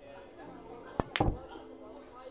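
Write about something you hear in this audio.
A cue strikes a ball with a sharp knock.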